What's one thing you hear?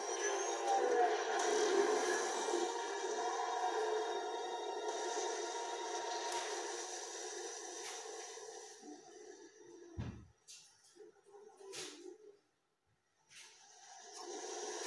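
Game sound effects play through a television speaker.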